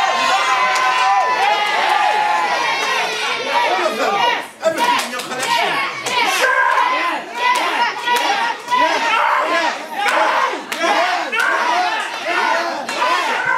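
A crowd chants and shouts in a hall.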